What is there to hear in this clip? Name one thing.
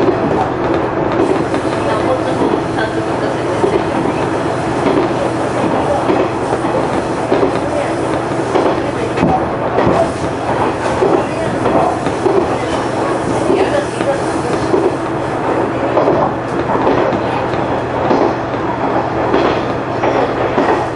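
A train engine hums and rumbles steadily from inside the cab.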